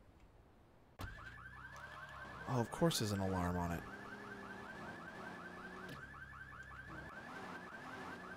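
Music plays from a car radio.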